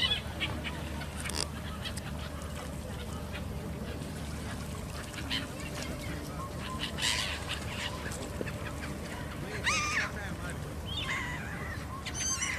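Gulls cry and squawk over the water.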